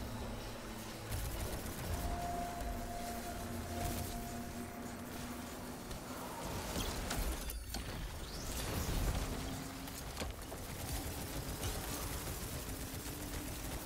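Gunfire blasts rapidly.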